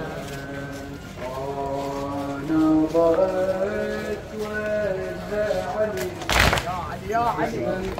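A crowd of men beat their chests in rhythm.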